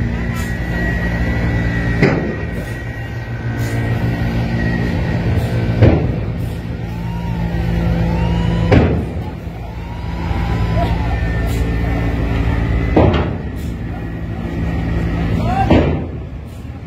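A large bus engine rumbles steadily as the bus manoeuvres close by.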